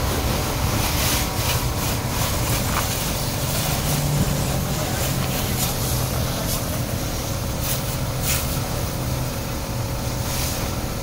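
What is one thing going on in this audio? Water splashes onto a car and the wet ground.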